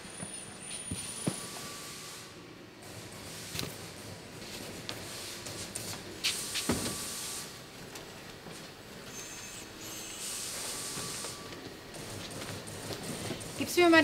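Paper sheets rustle as a man leafs through them.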